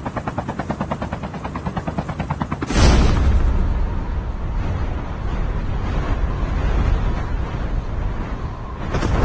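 A helicopter's rotor chops loudly overhead.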